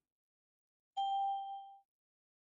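A soft electronic notification chime rings once and fades.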